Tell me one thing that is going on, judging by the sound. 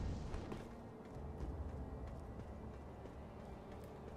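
Footsteps patter on roof tiles.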